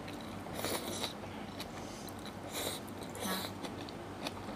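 A woman slurps noodles close by.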